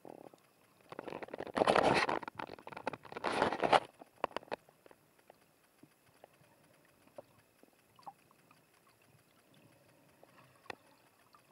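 Swim fins kick and churn water, heard muffled underwater.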